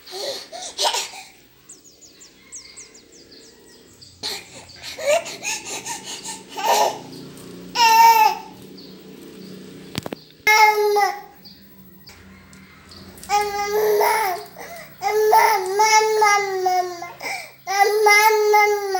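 A baby babbles and squeals up close.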